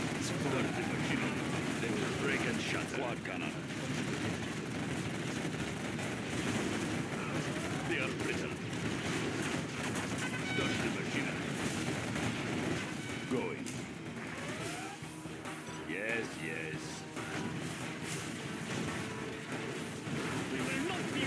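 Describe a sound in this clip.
Explosions and gunfire boom and crackle in a battle.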